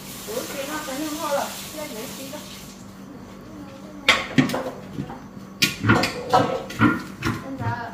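A large metal wok scrapes and knocks.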